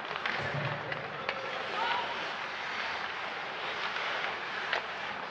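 Ice skates scrape and hiss across the ice in a large echoing arena.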